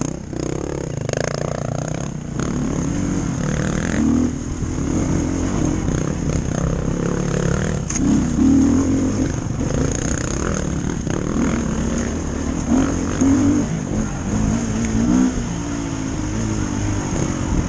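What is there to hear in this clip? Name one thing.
A dirt bike engine revs hard on a dirt trail.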